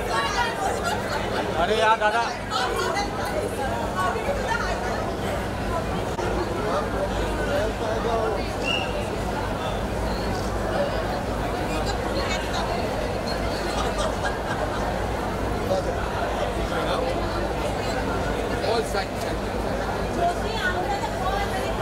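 A crowd of people chatter all around, close by.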